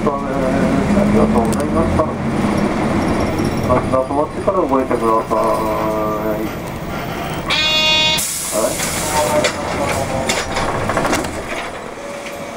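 A train rumbles along and slows to a stop.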